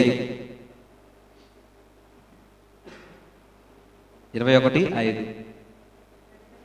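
A man speaks with emphasis into a microphone, heard through loudspeakers.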